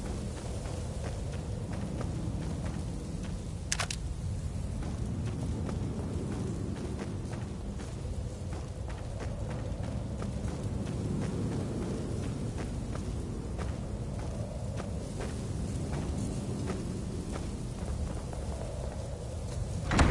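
Footsteps crunch on grass and gravel outdoors.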